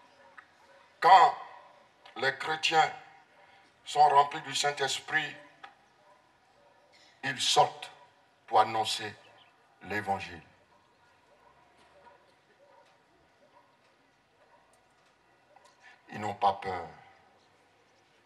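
A man preaches forcefully through a microphone and loudspeakers, in bursts with pauses.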